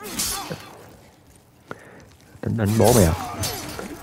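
A sword slashes and strikes.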